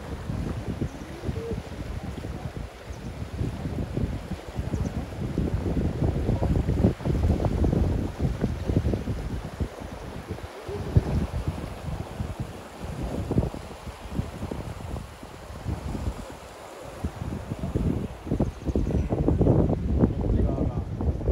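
A fast river rushes and splashes nearby.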